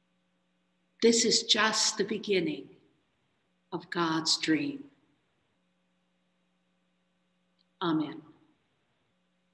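A middle-aged woman speaks calmly in short phrases through a microphone on an online call.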